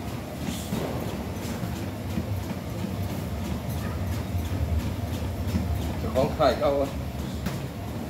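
A treadmill motor hums low and steadily.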